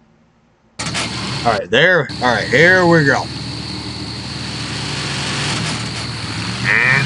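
A truck engine rumbles steadily.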